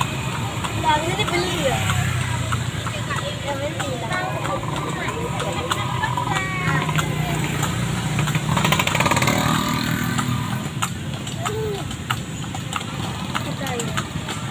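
Horse hooves clop on pavement at a steady pace.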